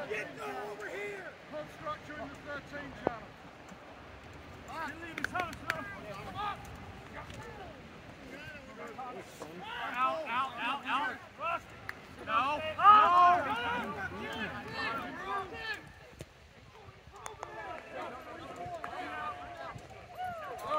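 Young women shout and cheer loudly outdoors across a playing field.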